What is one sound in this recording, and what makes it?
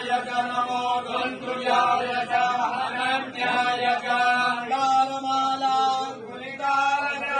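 A man chants steadily in a sung voice nearby.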